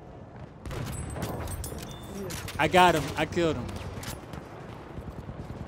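Rifle shots crack sharply.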